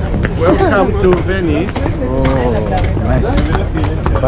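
Another man laughs nearby.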